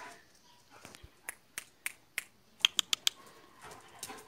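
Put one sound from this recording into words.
Dog claws click on hard ground.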